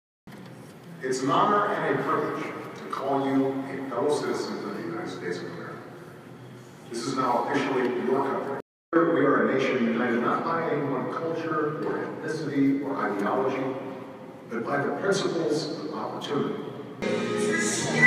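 A man gives a calm speech through a loudspeaker in a room.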